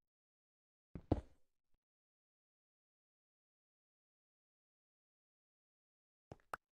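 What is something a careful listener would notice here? A pickaxe chips at stone blocks.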